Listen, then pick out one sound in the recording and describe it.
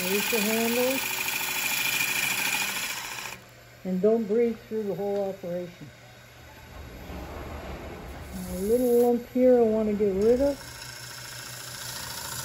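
A wood lathe hums steadily as it spins.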